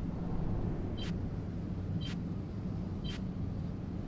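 A countdown timer beeps once a second.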